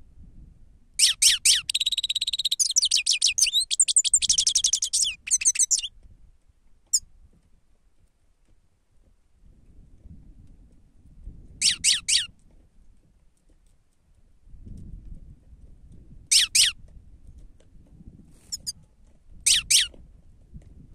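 A finch sings a fast, twittering song close by, in bursts with pauses between them.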